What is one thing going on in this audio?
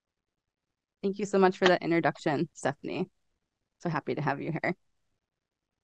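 Another young woman speaks calmly and cheerfully over an online call.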